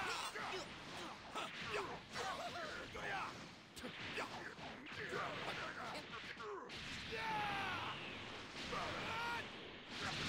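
An energy blast whooshes and explodes.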